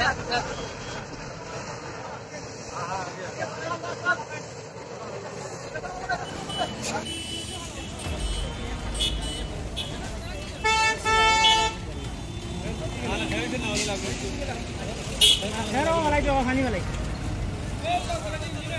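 Men talk among themselves outdoors.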